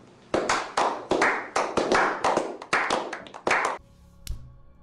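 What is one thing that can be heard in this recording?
Several men clap their hands briskly.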